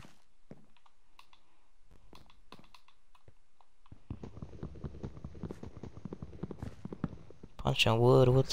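Stone blocks thud softly as they are placed one after another.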